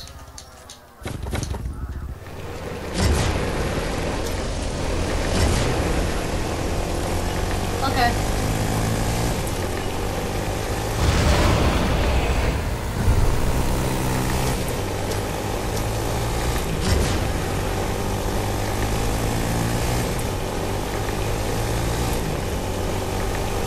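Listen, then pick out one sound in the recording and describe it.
A quad bike engine drones steadily as it drives.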